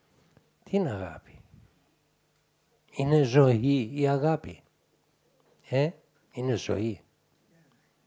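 An elderly man speaks slowly and calmly into a microphone in short phrases.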